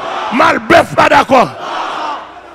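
A man shouts loudly through a microphone in an echoing hall.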